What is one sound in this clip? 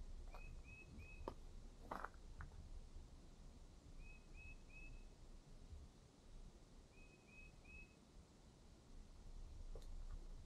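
Footsteps crunch on a dry dirt trail.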